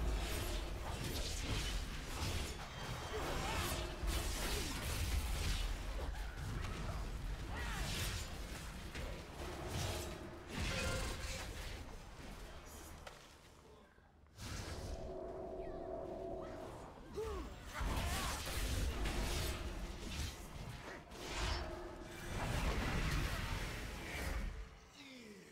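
Magic spells whoosh and burst in a rapid fight.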